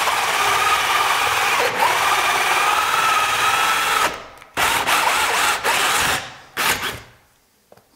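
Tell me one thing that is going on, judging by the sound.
A power tool whirs loudly close by.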